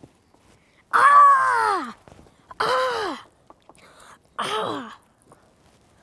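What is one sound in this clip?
A young boy shouts loudly.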